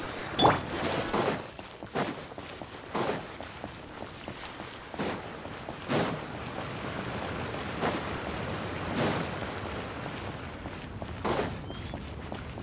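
Magical whooshing bursts sound again and again.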